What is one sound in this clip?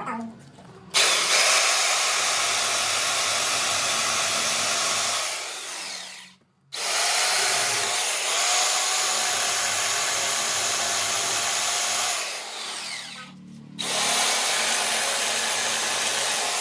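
A chainsaw roars loudly as it cuts into wood.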